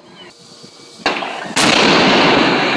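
A loud explosive blast booms and cracks.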